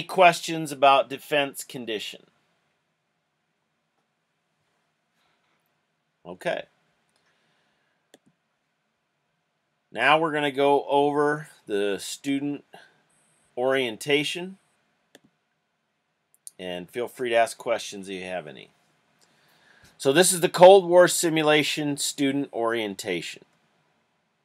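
A middle-aged man speaks calmly through an online call.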